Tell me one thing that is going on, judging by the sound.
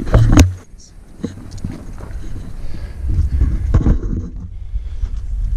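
Footsteps scrape and thud on rock.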